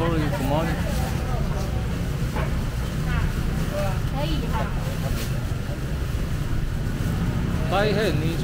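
Voices of a busy market crowd chatter all around.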